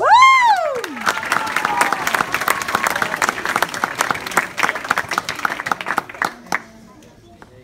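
A crowd of children and adults claps and cheers.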